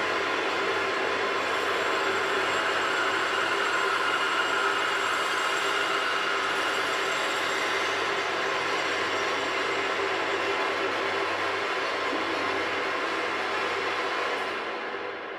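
A drill press whirs steadily as it drills into metal.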